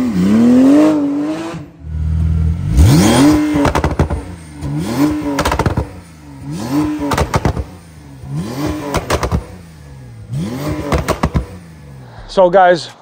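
A sports car engine revs sharply in repeated bursts, close by.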